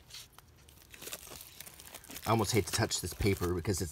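Plastic wrap crinkles and rustles under fingers.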